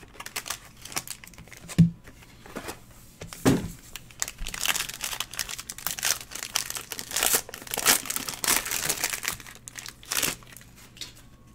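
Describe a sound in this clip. Foil wrapping crinkles and tears in close hands.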